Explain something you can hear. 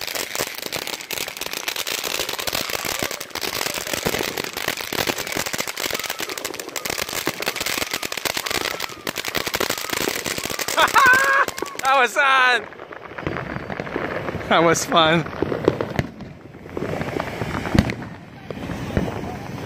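Fountain fireworks hiss and crackle loudly.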